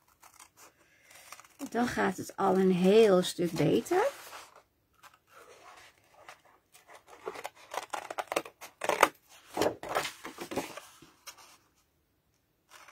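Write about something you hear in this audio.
Scissors snip through thin card.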